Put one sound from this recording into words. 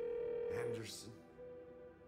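A young woman speaks quietly into a phone.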